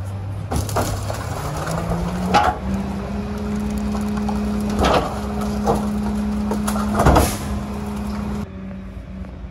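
A hydraulic lifter whines as it raises a bin.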